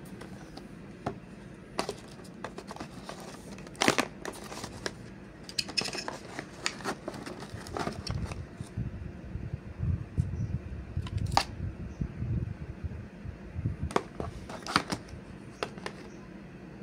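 Hands rustle and tap plastic packaging and a cable close by.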